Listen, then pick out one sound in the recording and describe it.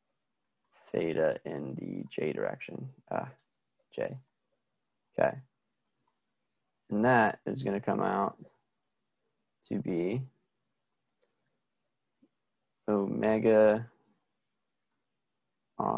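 A man explains calmly into a close microphone, in short phrases with pauses.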